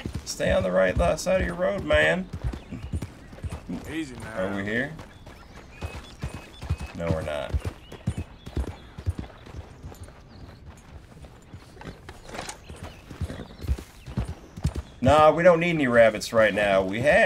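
A horse's hooves clop steadily on a dirt track.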